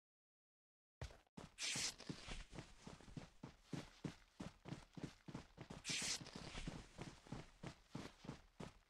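Footsteps crunch quickly on grass.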